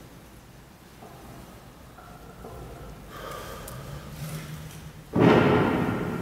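An elderly man speaks slowly through a microphone in a large echoing hall.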